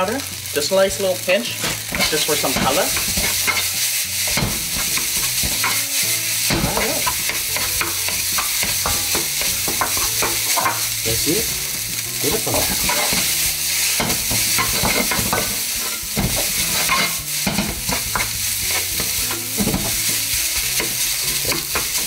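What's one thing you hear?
A wooden spatula scrapes and knocks against a pan as rice is stirred.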